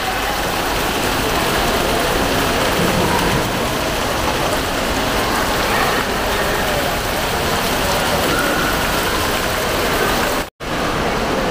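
Fountain jets splash steadily into a pool.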